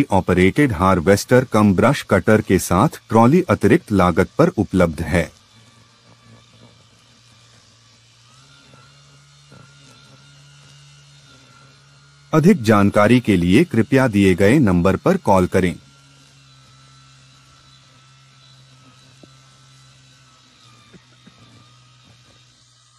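A trimmer head whirs as it cuts dry grass.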